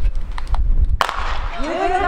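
A starting pistol fires once with a sharp crack.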